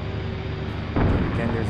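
Cannon fire bursts out with a loud rattle.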